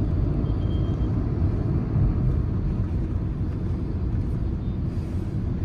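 A car drives along an asphalt road, heard from inside.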